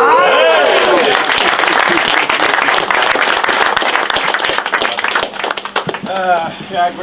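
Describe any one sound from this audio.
A group of people clap their hands.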